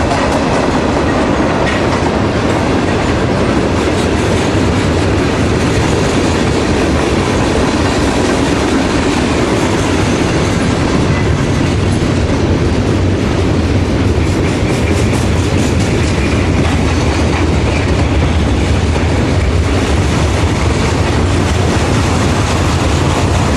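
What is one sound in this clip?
A long freight train rumbles steadily past close by.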